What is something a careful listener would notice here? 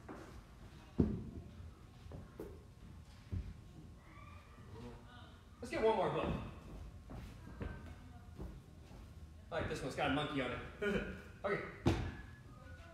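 Objects thud as they drop onto a mat.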